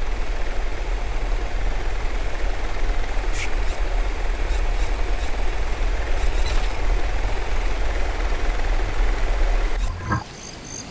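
A small drone's rotors whir with a steady, loud hum.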